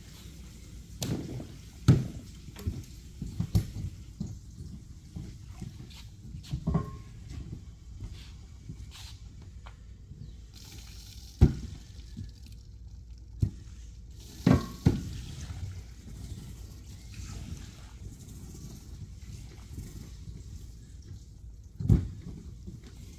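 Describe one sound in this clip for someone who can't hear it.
A squeegee scrapes and squelches over a wet, foamy rug.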